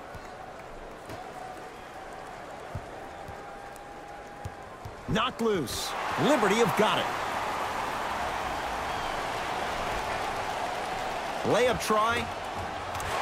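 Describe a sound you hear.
A basketball bounces on a hard wooden court.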